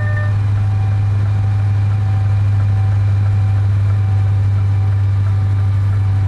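A truck engine hums steadily at a low pitch.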